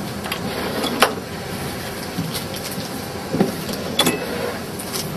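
A machine clicks and clunks as it runs.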